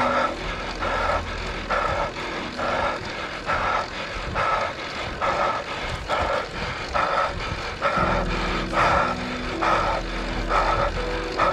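Wind rushes past a moving cyclist.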